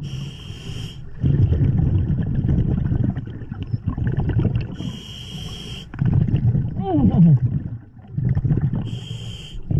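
A diver breathes in through a regulator with a steady hiss.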